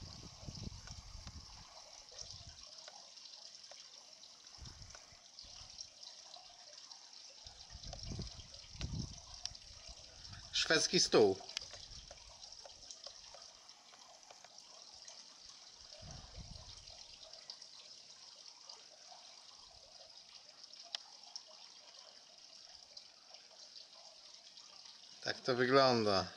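Water drips and patters steadily into a shallow pool.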